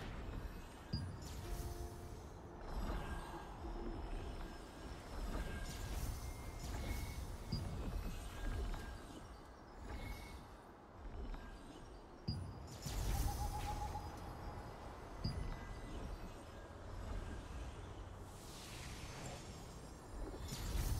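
Soft interface clicks sound as menu buttons are pressed.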